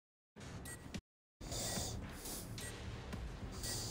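A sword slashes through flesh with wet, heavy thuds.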